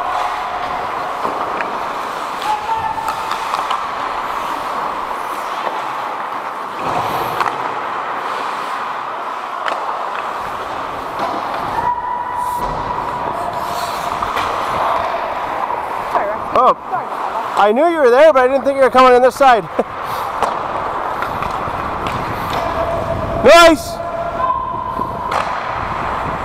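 Ice skates scrape and hiss across the ice in a large echoing rink.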